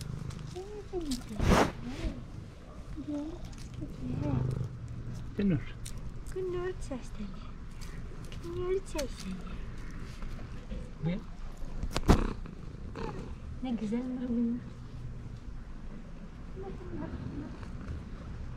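Cats meow repeatedly, close by.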